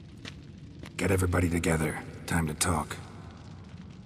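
A man speaks briefly in a low, gruff voice, close by.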